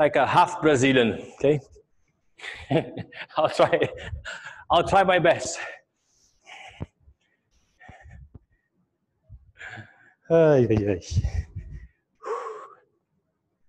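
A man talks to the listener with energy, close to a microphone.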